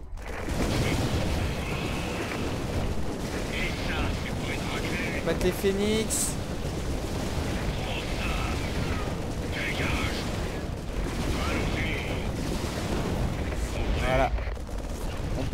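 Energy weapons zap and crackle in a battle.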